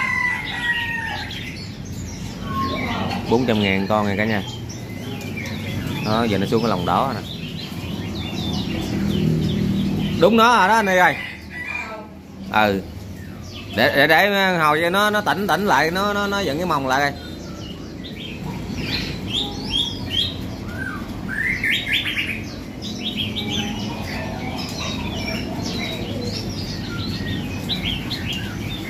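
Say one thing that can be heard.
Small caged birds chirp and warble nearby.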